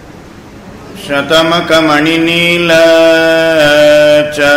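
A man chants in a steady, sung voice through a microphone.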